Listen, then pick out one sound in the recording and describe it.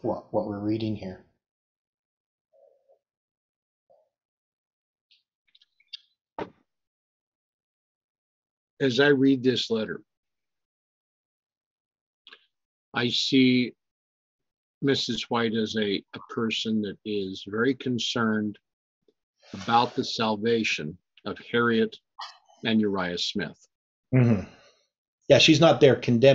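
An elderly man speaks calmly and close to a microphone, with pauses.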